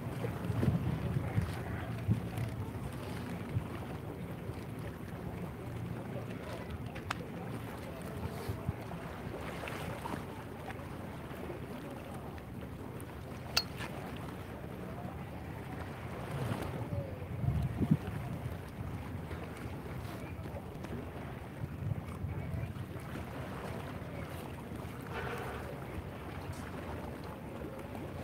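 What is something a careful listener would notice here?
Wind blows steadily outdoors by open water.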